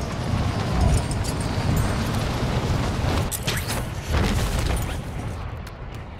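Wind rushes loudly during a fast fall, then fades.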